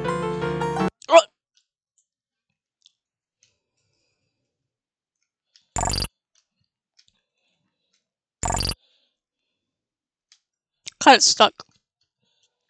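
Short electronic game sound effects beep and zap.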